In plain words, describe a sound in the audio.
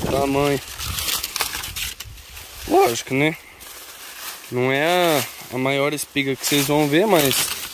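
Dry corn leaves rustle and crackle as a hand brushes through them.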